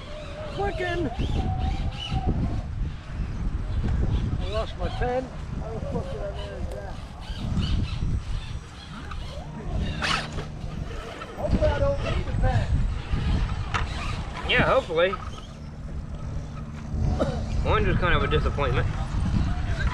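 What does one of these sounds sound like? A small electric motor whirs as a toy truck crawls over rocks.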